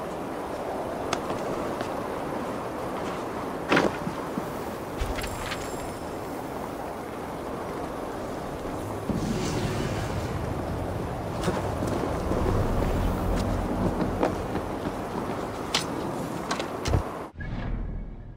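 Strong wind howls steadily.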